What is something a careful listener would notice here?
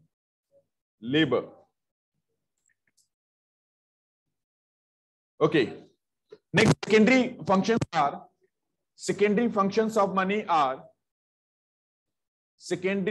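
A man speaks calmly and close, in short bursts with pauses, as if over an online call.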